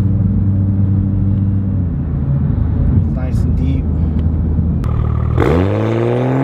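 A car engine idles with a deep, steady rumble.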